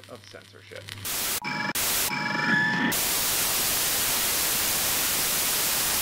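Loud television static hisses.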